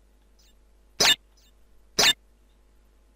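A game menu gives short bright chimes as options are selected.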